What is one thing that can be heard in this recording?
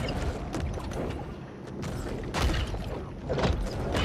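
A shark bites down on a fish with a wet crunch.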